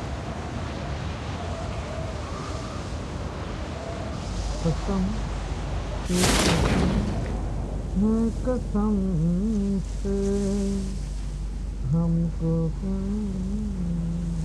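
Wind rushes steadily past a falling skydiver.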